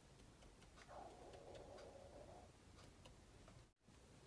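A paintbrush brushes softly across canvas.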